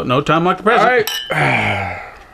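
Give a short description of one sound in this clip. Glasses clink together.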